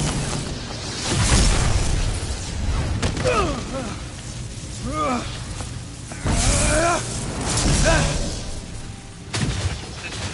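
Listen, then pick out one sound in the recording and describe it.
Electricity crackles and sizzles in loud bursts.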